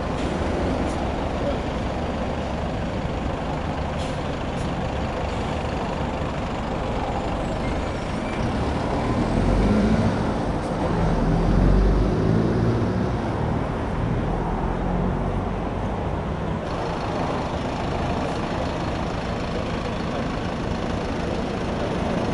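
A bus engine idles close by with a low, steady rumble.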